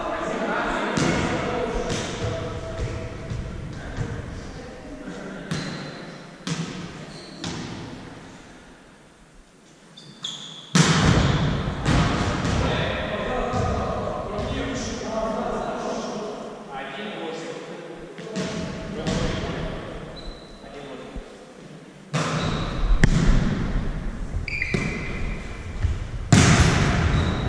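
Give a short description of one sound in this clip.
A volleyball is hit with sharp smacks.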